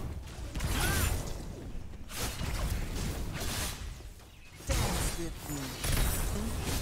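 Magic blasts and explosions burst loudly in quick succession.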